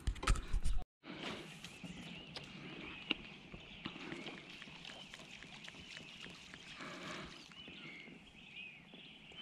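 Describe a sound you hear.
Water laps gently against an inflatable boat.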